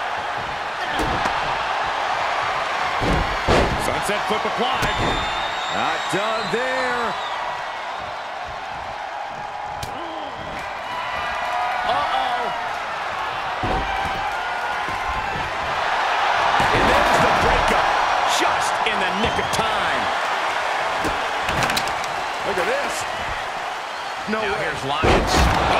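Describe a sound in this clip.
Bodies slam onto a wrestling ring with heavy thuds.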